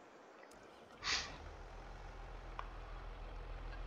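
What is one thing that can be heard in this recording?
A tractor engine starts and idles with a low, steady rumble.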